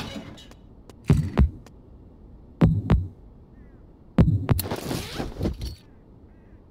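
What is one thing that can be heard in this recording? A door creaks and bangs open.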